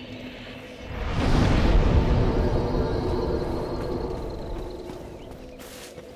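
A deep rushing whoosh swells and slowly fades.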